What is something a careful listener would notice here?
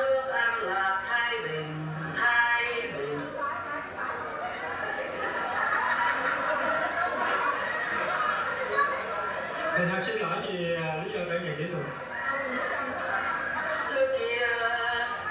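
Young girls speak loudly in unison.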